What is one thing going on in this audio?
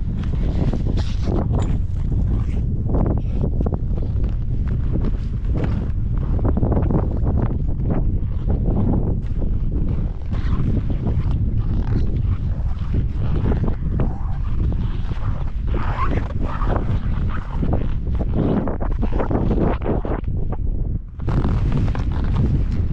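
Strong wind buffets a microphone outdoors.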